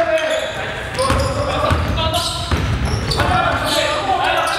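A basketball bounces with dull thuds on a hardwood floor.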